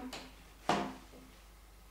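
Metal tubing knocks and clanks.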